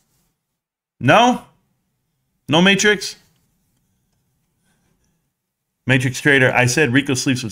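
A middle-aged man speaks into a close microphone in short bursts, then with animation.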